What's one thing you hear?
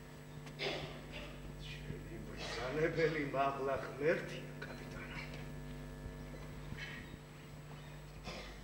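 An elderly man speaks pleadingly, close by.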